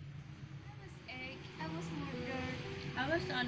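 Young women talk casually nearby.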